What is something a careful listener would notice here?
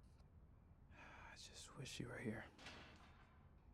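A young man speaks softly and sadly, close by.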